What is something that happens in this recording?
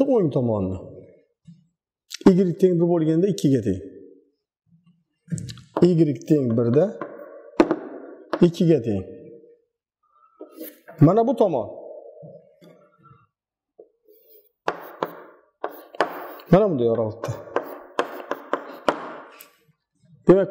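A middle-aged man speaks calmly and clearly, explaining as he teaches.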